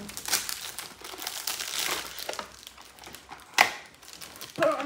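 Wrapping paper rustles and crinkles as it is torn open.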